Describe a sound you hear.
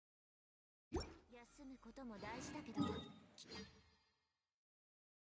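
A soft magical shimmer swells and sparkles.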